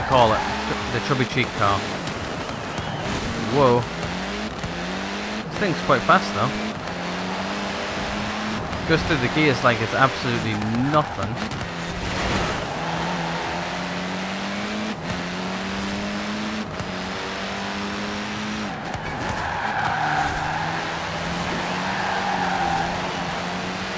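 A race car engine roars and revs up and down through gear changes.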